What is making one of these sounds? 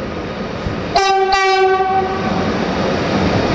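A locomotive horn sounds two short loud blasts close by.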